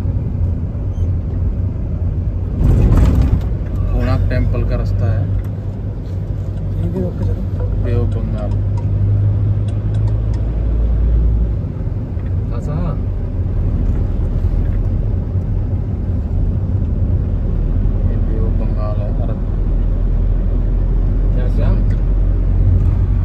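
A vehicle engine rumbles low and steadily while driving.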